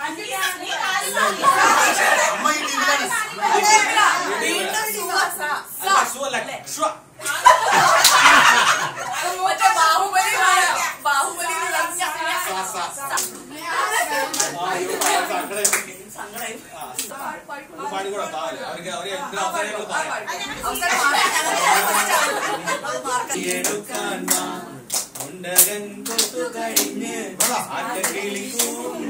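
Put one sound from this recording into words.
Several people chatter and laugh together in a room.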